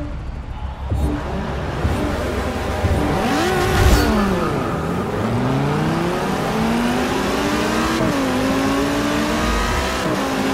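Racing car engines roar and rev up, rising in pitch through the gears.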